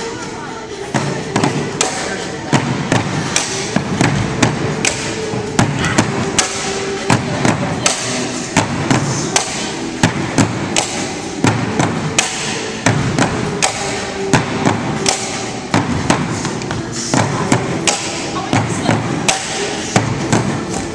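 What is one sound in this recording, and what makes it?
Bamboo poles clack together and knock on a wooden floor in a steady rhythm, in an echoing hall.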